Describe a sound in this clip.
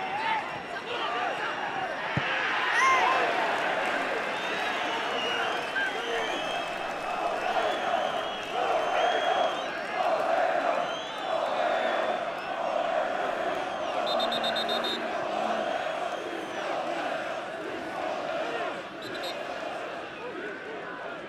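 A large stadium crowd chants and whistles loudly.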